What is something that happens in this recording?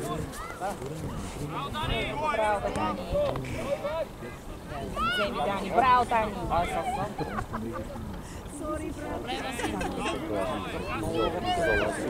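Children shout and call out to each other outdoors, some way off.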